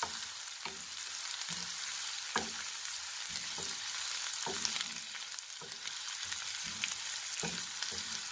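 A wooden spatula scrapes and knocks against a pan.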